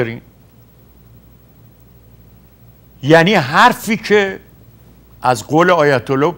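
An elderly man speaks calmly and clearly into a microphone, with pauses.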